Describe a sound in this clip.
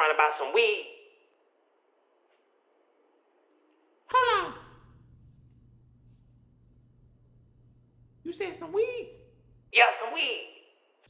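A man talks in a high, cartoonish voice close to a microphone, in short lively bursts.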